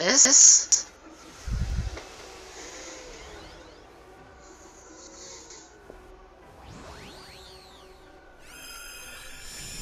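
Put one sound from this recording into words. A magical energy blast whooshes and crackles.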